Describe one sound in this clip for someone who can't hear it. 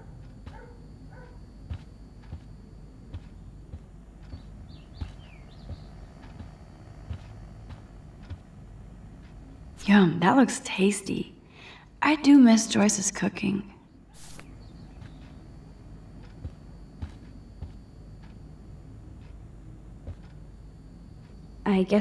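Footsteps tread softly across a carpeted floor.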